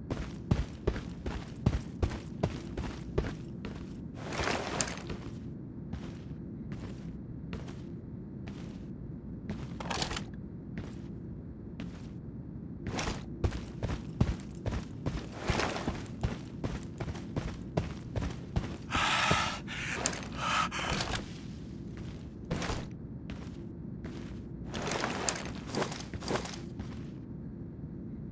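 Footsteps crunch quickly over grass and gravel.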